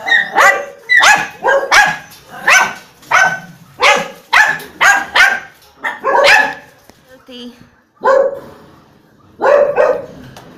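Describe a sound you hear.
Dogs bark loudly and repeatedly nearby.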